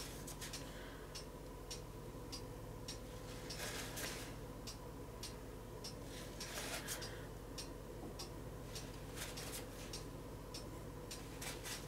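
A wooden stick taps lightly on a painted surface.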